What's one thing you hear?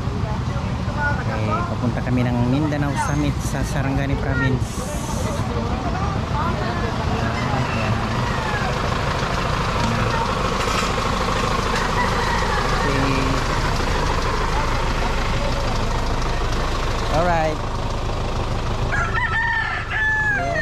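A truck engine hums close by.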